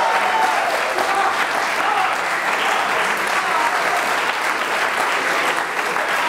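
An audience claps and applauds in a large echoing hall.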